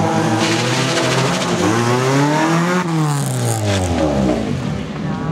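A rally car engine roars loudly as the car speeds past close by.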